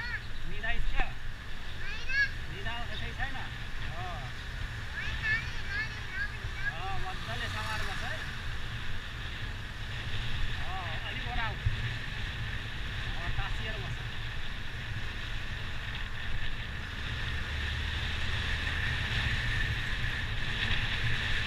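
A motorbike engine hums low and steady.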